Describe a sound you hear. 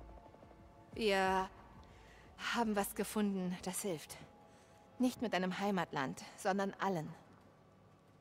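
A young woman speaks calmly and earnestly.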